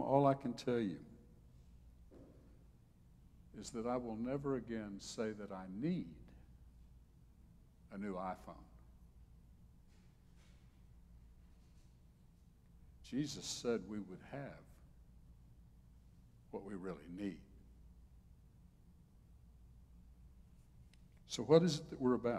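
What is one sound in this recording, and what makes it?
An elderly man speaks slowly and calmly into a microphone, with pauses.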